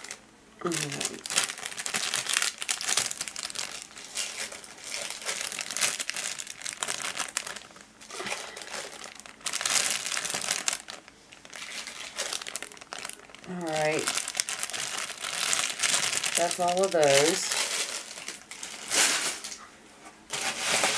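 Plastic bags crinkle and rustle close by.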